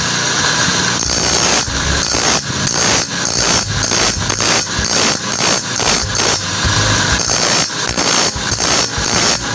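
A saw blade grinds harshly against a spinning wheel in repeated short bursts.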